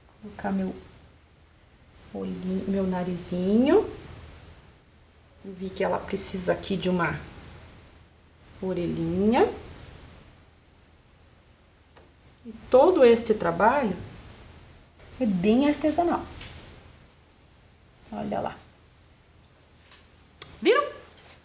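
A woman speaks calmly and clearly, close to a microphone.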